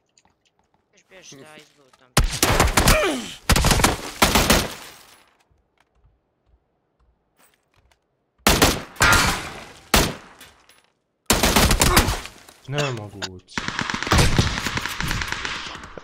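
A young man talks through a microphone, with animation.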